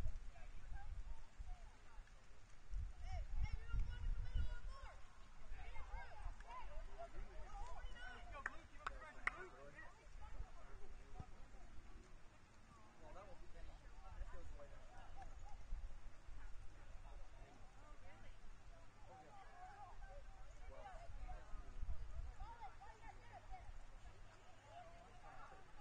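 Young players shout calls to each other in the distance, outdoors.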